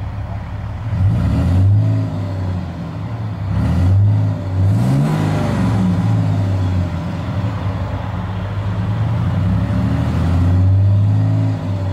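A truck engine revs up and down repeatedly.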